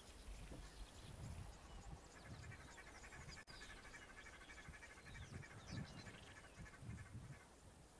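A rhinoceros chews grass close by.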